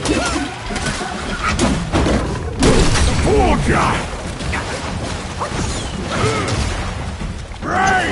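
Heavy blows thud and weapons clash in a fight.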